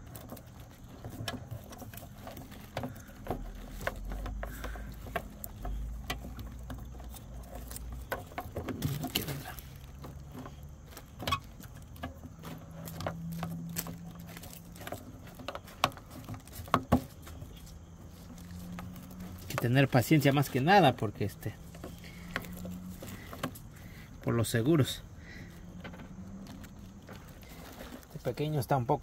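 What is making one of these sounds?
Hard plastic parts click and tap as they are handled close by.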